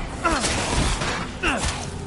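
A metal grinder screeches.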